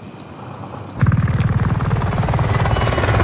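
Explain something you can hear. A helicopter's rotor thumps loudly and rapidly close by.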